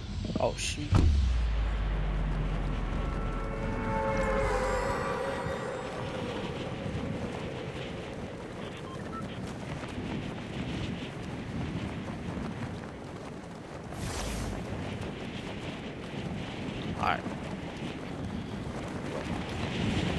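Wind rushes steadily past a figure in freefall.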